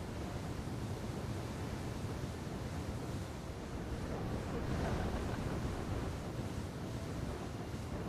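Small explosions pop and crackle.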